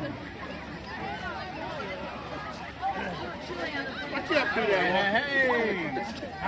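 A crowd of men and women talk and shout excitedly outdoors.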